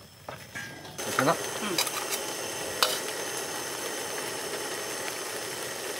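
Food sizzles steadily in a hot pan.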